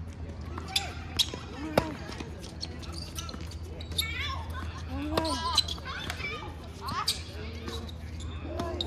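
Men call out and talk across an outdoor court.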